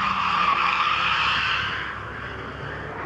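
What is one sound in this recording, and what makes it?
Tyres squeal on tarmac as a car slides through a turn.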